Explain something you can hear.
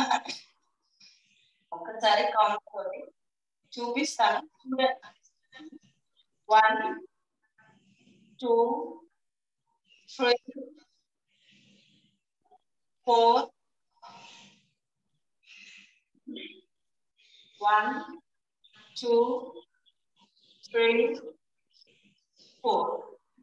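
A woman speaks calmly and clearly in short phrases, close by.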